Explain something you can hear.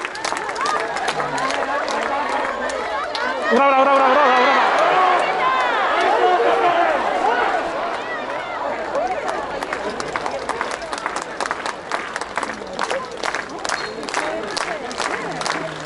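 A large stadium crowd chants and cheers loudly outdoors.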